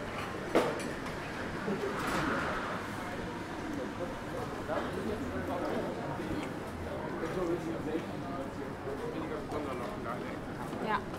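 A crowd of people murmur and talk nearby outdoors.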